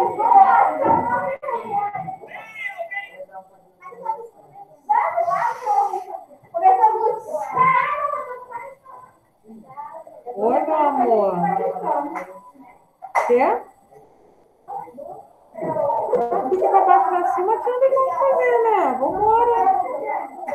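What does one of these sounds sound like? A woman talks calmly, close by, through a computer microphone as on an online call.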